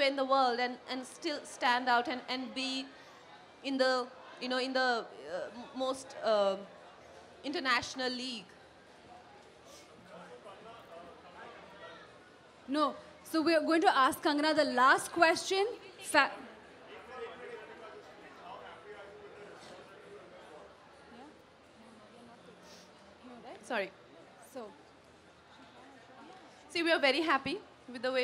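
A young woman speaks calmly into a microphone, with pauses.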